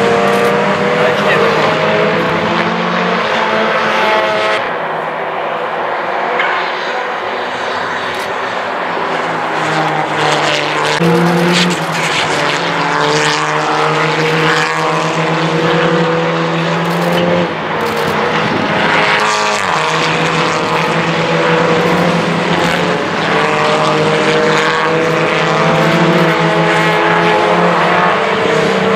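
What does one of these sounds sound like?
Racing car engines roar loudly, revving and shifting as cars speed past.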